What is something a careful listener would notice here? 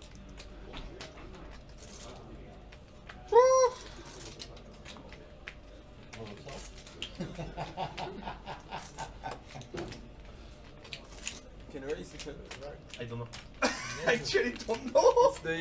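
Poker chips clack against each other.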